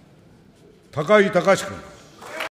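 An elderly man speaks firmly into a microphone in a large echoing hall.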